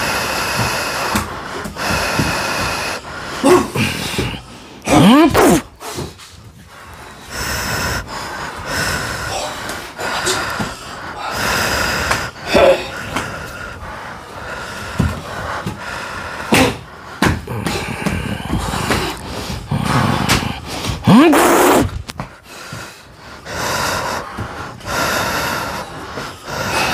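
A man shouts and grunts with effort close by.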